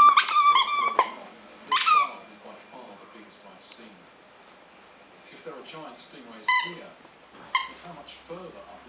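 A rubber toy squeaks in short, sharp bursts as a puppy bites it.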